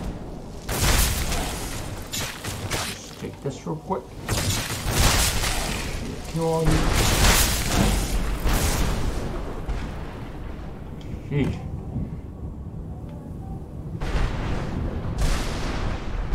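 A magic spell roars and crackles in bursts.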